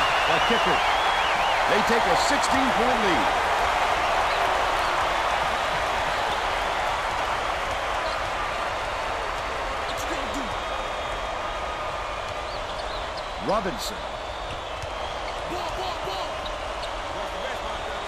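A crowd cheers loudly in a large echoing arena, slowly quieting.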